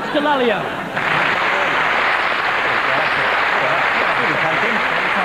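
Hands clap in steady applause.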